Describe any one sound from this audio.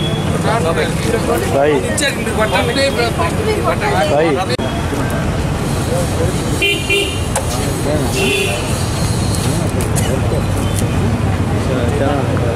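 A crowd of men and women talk loudly over one another outdoors.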